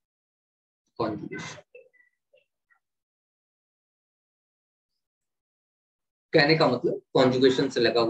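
A man speaks calmly into a close microphone, explaining in pauses.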